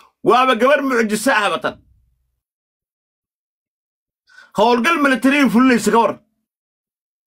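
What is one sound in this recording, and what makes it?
A man speaks loudly and with animation over an online call, in two short bursts.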